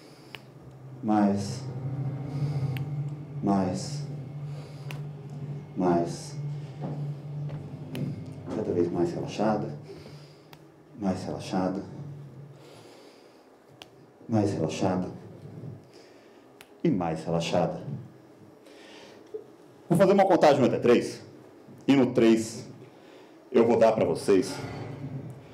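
A man speaks calmly and slowly through a microphone, in short phrases with pauses.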